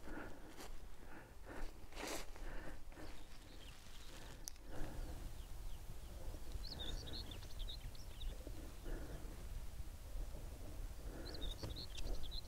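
Wind blows outdoors, rumbling low and steady.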